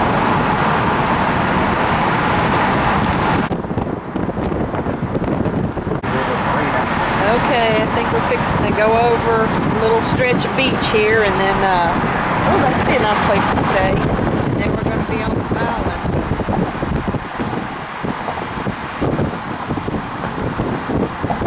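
Car tyres hum on the road.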